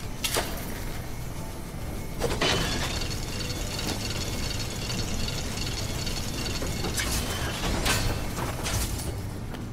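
A large spiked wheel grinds and whirs as it turns.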